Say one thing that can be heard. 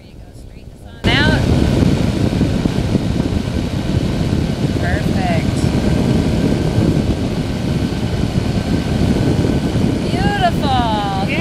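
An aircraft engine drones loudly with wind rushing past.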